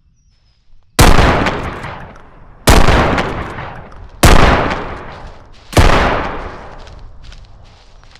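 A shotgun fires loudly several times, each blast echoing away.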